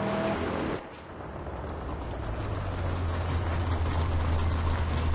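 A car engine hums low in the distance.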